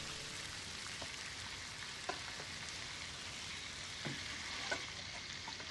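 A metal spatula scrapes and taps against a frying pan.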